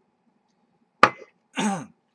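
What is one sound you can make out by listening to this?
A man sets a cup down with a knock.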